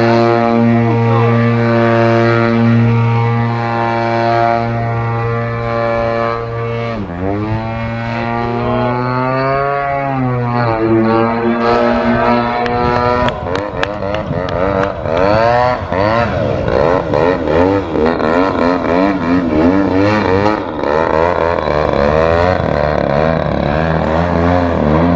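A model airplane engine whines loudly, rising and falling in pitch as the plane swoops and turns.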